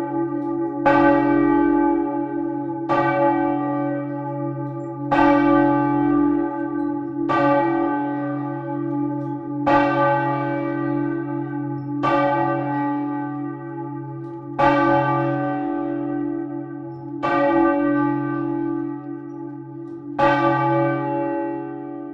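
Large church bells ring loudly and repeatedly, each stroke ringing on and echoing in a stone tower.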